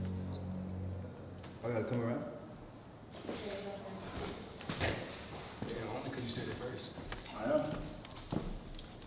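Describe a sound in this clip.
Young men talk and banter in a small room.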